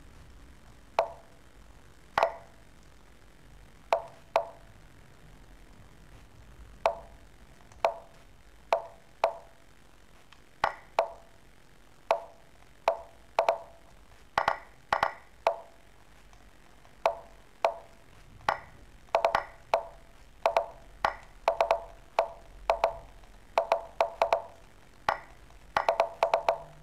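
Short wooden clicks of chess pieces being moved sound again and again, quickly.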